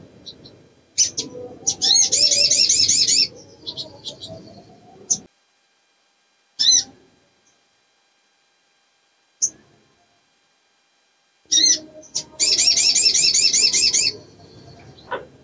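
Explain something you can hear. A small bird sings loud, rapid trilling bursts with sharp chirps between them.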